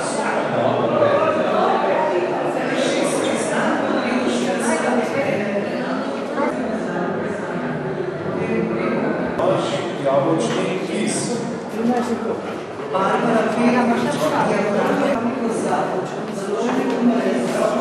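A crowd of adults chatters nearby.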